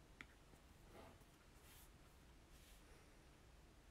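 Soft fleece fabric rustles close by.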